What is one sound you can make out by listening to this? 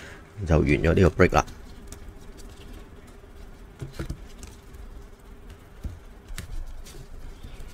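Plastic card cases click and rustle in handling.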